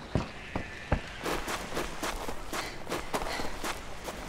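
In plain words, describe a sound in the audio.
Footsteps swish through grass and leaves.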